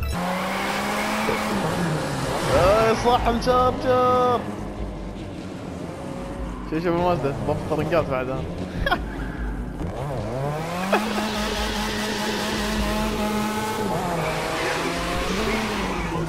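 A car engine revs loudly and roars as it drives.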